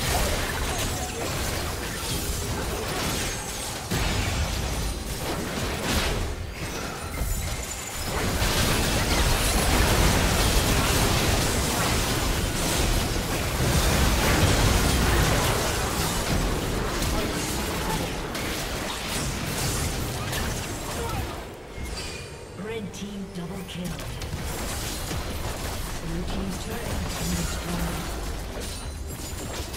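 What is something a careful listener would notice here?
Spell blasts and hits crash and whoosh in a fast game battle.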